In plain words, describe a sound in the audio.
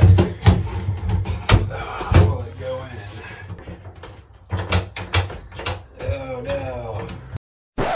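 A latch clicks and knocks as it is fitted to a wooden panel.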